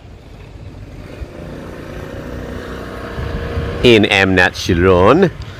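A motor scooter engine hums as it approaches and passes close by.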